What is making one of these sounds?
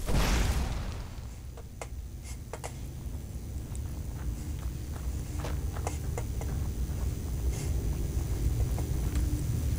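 Spells hum low and steady in both hands.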